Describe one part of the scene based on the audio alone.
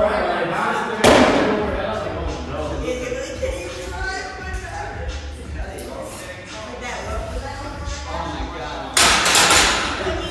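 A heavy barbell crashes onto the floor in an echoing hall.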